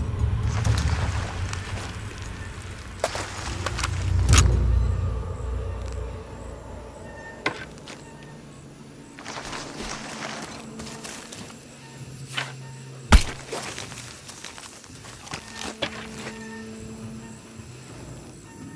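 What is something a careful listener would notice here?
Footsteps rustle through dense leaves and undergrowth.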